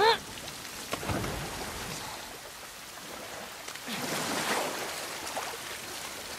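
Water splashes as a person swims through a pond.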